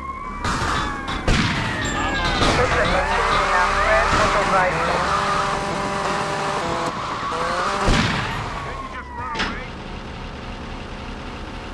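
A motorcycle engine revs and roars as the bike rides away.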